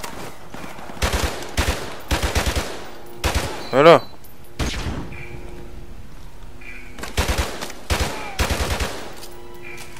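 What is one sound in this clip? A rifle fires in rapid bursts, echoing off hard walls.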